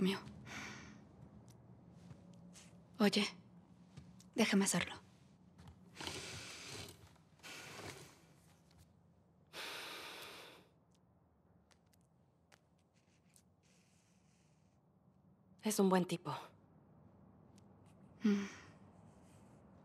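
A young woman speaks softly and close by.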